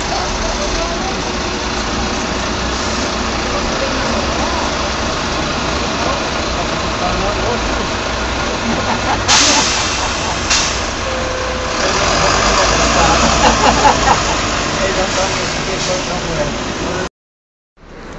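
A bus engine rumbles as the bus slowly pulls away.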